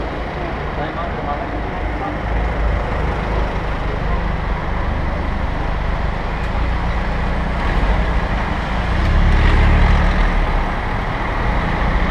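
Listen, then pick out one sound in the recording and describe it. Car engines idle and hum nearby in city traffic.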